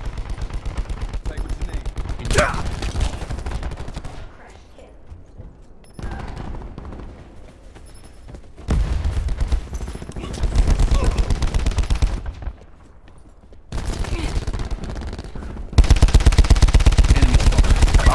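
A video game's automatic rifle fires in rapid bursts.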